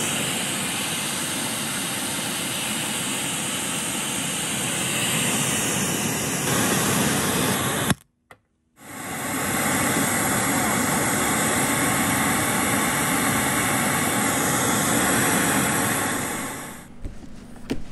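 Loudspeakers play loud, dense sound close by, with a brief break partway.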